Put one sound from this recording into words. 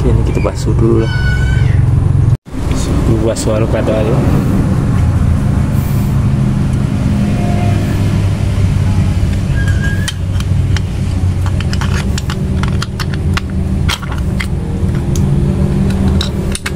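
Metal parts clink and click as they are handled.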